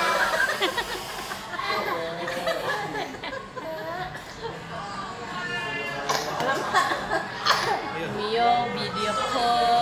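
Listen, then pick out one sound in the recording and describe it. A toddler boy laughs and babbles close by.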